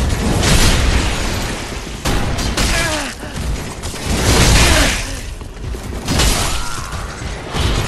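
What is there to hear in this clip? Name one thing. Metal blades clash and slash in a fight.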